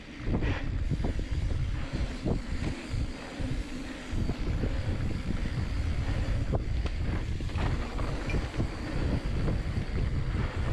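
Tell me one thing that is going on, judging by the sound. Wind rushes loudly past as a bicycle speeds downhill.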